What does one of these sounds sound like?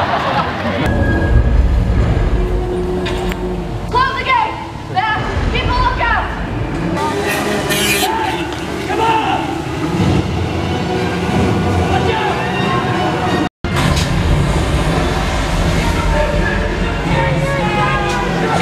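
A jet ski engine roars and whines across the water.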